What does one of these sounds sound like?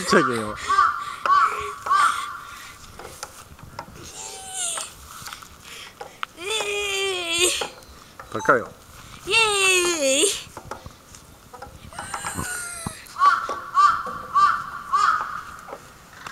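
A swing squeaks rhythmically as it sways.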